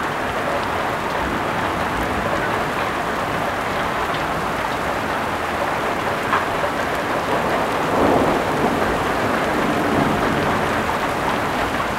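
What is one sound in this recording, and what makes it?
Heavy rain pours down steadily outdoors.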